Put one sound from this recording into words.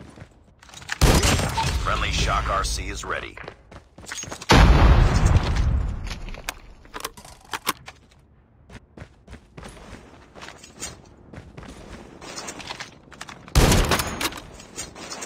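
A sniper rifle fires loud, booming shots that echo.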